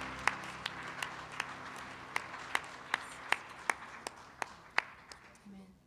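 Hands clap rhythmically in an echoing hall.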